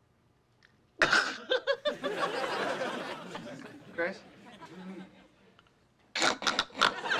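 A young woman laughs loudly and gleefully.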